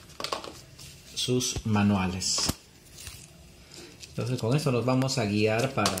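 Paper leaflets rustle as they are flipped.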